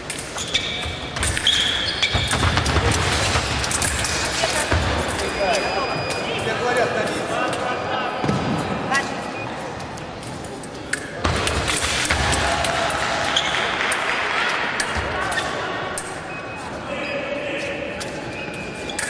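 Blades clash and click.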